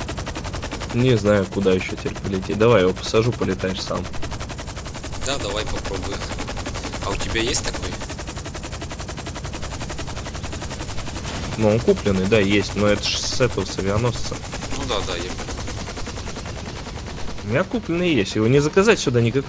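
A young man talks casually into a headset microphone.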